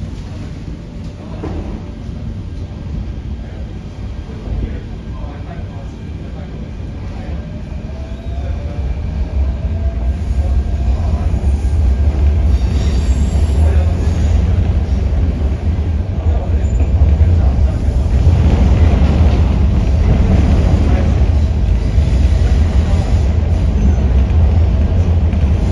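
A subway train rumbles along the track, growing louder as it picks up speed.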